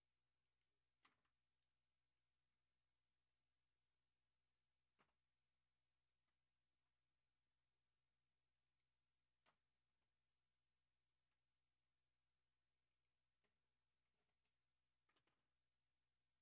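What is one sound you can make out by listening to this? Plastic pens clack softly against each other now and then.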